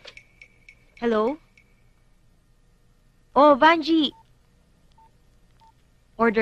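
A young woman talks on a phone nearby.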